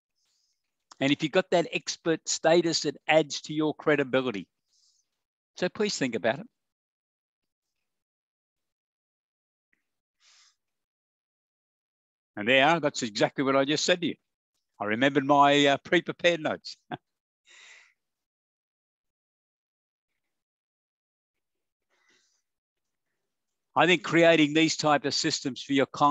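A middle-aged man speaks calmly through a microphone, heard over an online call, with pauses.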